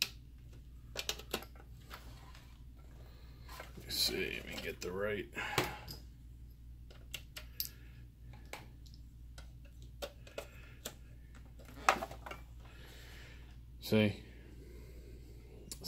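A plastic device clicks and knocks as it is handled.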